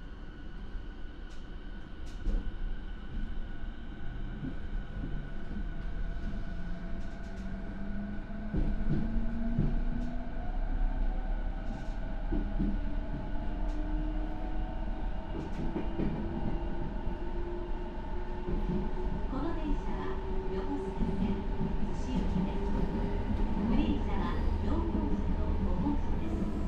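A train rumbles and rattles along the tracks.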